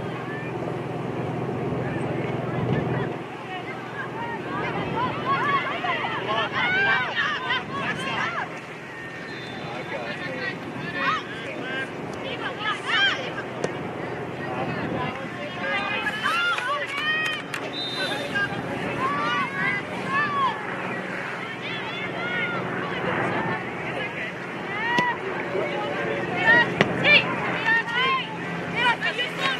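Young women players call out to each other across the field.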